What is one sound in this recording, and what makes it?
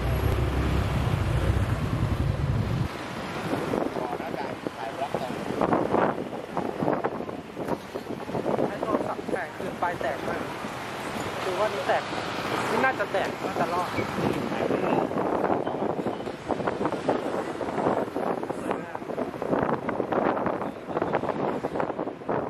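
Motor scooters pass by in traffic.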